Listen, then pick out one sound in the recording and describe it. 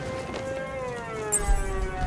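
A heavy body lands with a thud.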